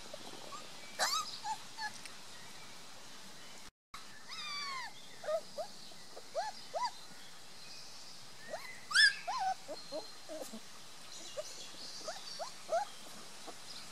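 Puppies whine and squeal in high, short cries.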